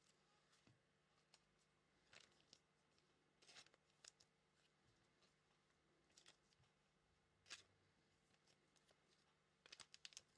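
Cards tap softly onto a table.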